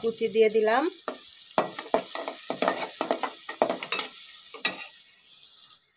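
A spatula scrapes and stirs in a metal pot.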